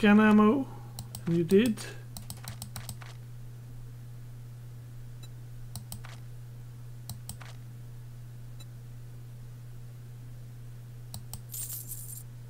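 Short soft clicks tick now and then as menu items are selected.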